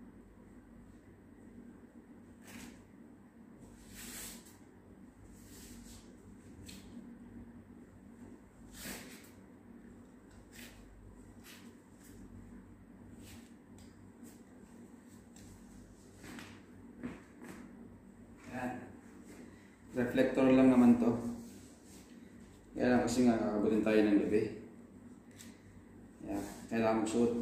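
Plastic buckles click and straps rustle as a harness is adjusted.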